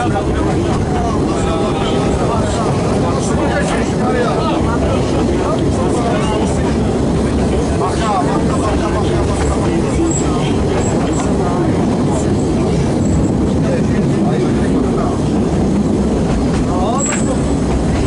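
A narrow-gauge train carriage rumbles along the track.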